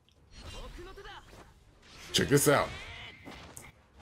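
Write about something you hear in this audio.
Blows land in quick hard hits.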